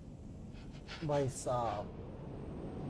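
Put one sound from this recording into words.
A young man speaks loudly and excitedly into a close microphone.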